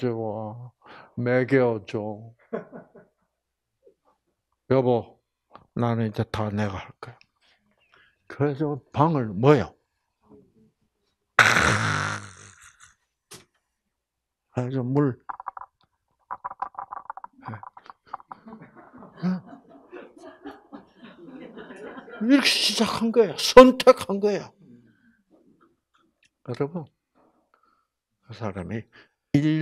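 An elderly man speaks with animation into a microphone, with pauses.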